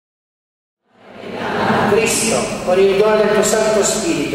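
A middle-aged man chants into a microphone, heard through loudspeakers in an echoing hall.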